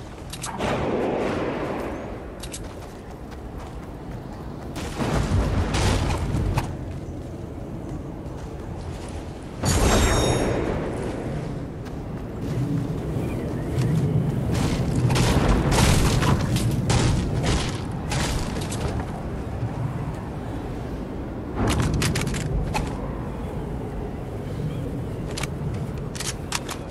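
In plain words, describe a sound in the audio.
Footsteps run quickly over snowy ground.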